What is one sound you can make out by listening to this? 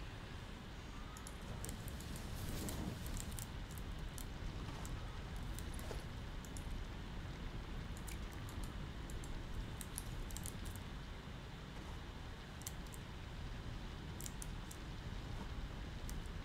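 Short electronic clicks and blips sound now and then.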